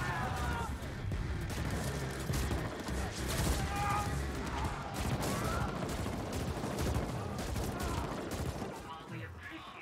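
Heavy explosions rumble loudly.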